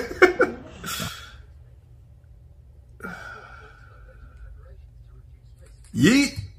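A young man laughs softly close to a microphone.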